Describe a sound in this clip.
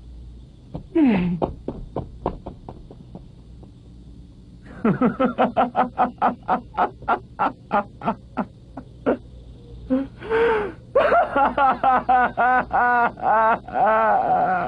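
A man laughs loudly and heartily, close by.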